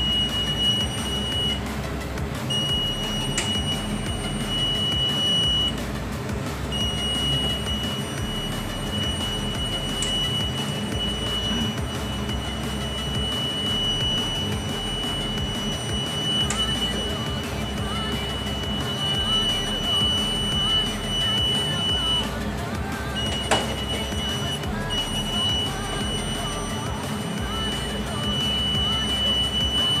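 An alarm panel gives off a steady, high-pitched beep that cuts out now and then.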